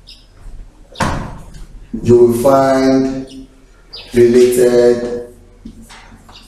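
A man speaks clearly nearby, explaining at a steady pace.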